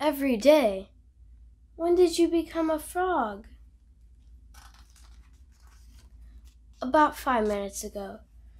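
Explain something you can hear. A young girl reads aloud expressively, close by.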